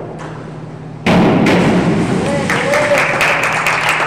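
A diver splashes into the water in a large echoing hall.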